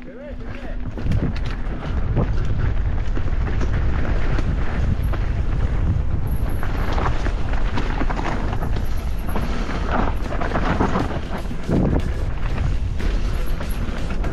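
Wind rumbles loudly as the rider speeds along.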